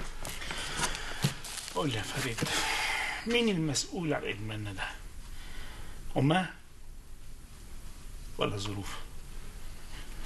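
An older man answers angrily in a gruff voice, close by.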